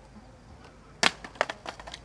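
A skateboard clatters on pavement.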